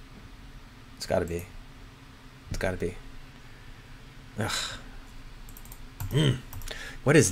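A man speaks calmly into a close microphone in short bursts.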